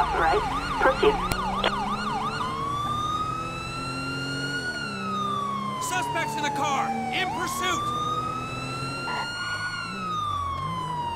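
A police siren yelps rapidly, then switches to a slow rising and falling wail.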